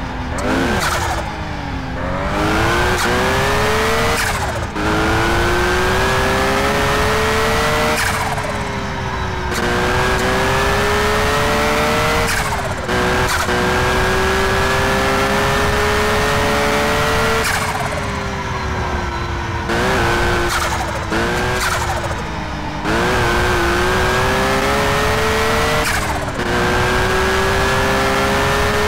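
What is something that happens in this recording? A car engine roars, revving up through the gears and dropping at each gear change.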